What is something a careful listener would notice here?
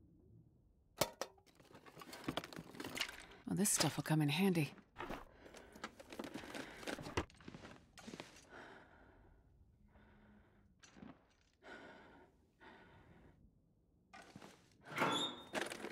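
Items rustle and clatter as a container is rummaged through.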